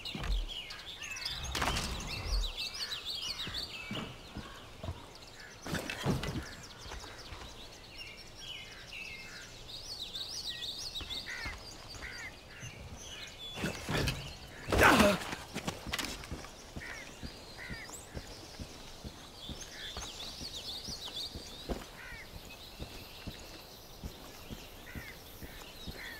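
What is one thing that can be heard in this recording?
Footsteps thud on a hard surface.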